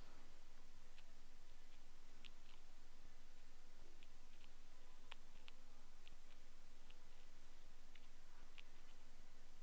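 A tool scrapes and clicks softly inside an ear, close to a microphone.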